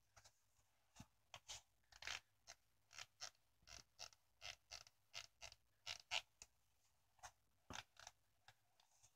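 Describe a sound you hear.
A hand squeezes and flexes a sneaker, its leather creaking softly.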